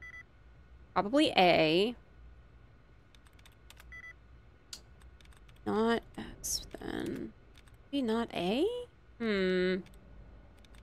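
A young woman speaks with animation through a microphone, in short bursts.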